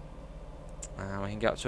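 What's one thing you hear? A young man speaks with animation into a microphone, close up.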